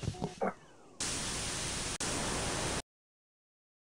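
Static hisses loudly.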